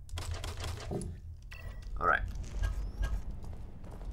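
A crossbow fires a bolt with a sharp snap.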